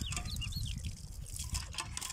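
A hand pump's handle creaks as it is pushed down.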